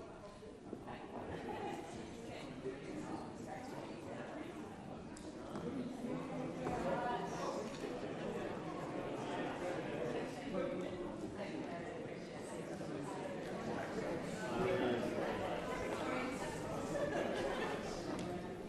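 A crowd of men and women chatter in a large echoing hall.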